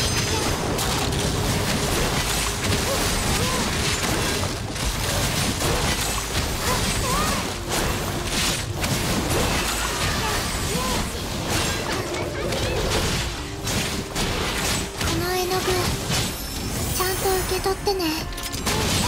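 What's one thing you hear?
Game combat effects whoosh and crash rapidly.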